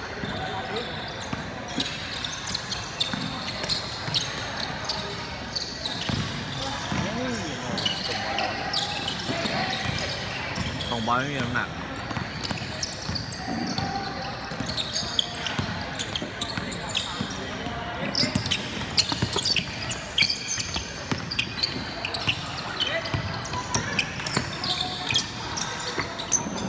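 Players and spectators shout and call out in a large echoing hall.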